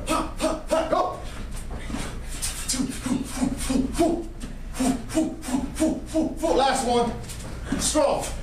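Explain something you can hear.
Sneakers thump and shuffle on a hard floor as men hop over low hurdles.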